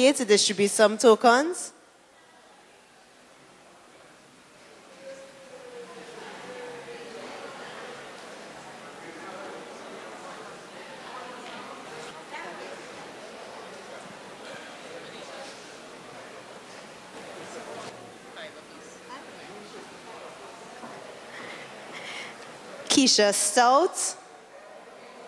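A young woman speaks with animation into a microphone over loudspeakers in an echoing hall.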